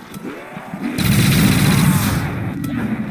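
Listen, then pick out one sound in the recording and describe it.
A futuristic weapon fires in a loud, crackling burst.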